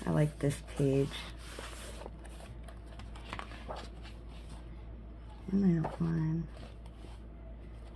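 Paper pages rustle and flip as they are turned.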